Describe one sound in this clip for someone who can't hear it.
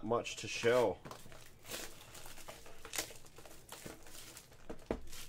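Plastic wrap crinkles as it is torn off.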